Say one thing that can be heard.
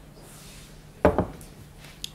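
A glass knocks down onto a table.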